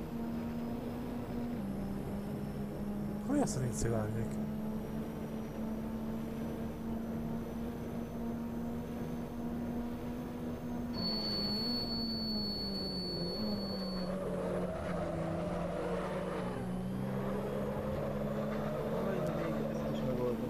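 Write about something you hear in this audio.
A racing car engine drones steadily, its pitch dipping as the car slows for a bend.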